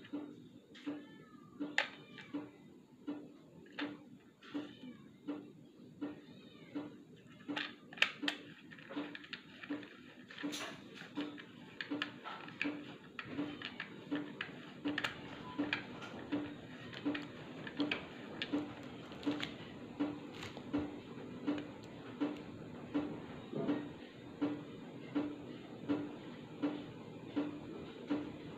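A plastic cassette clicks and rattles as hands handle it.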